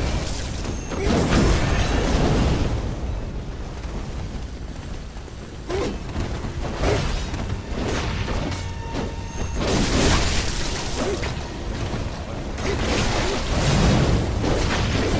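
Blades clash and slash in a fight.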